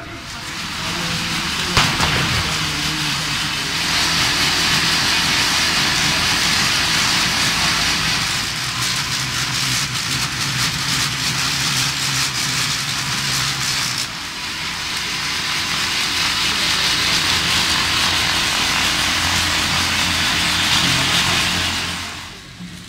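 Bicycle wheels whir steadily on training rollers.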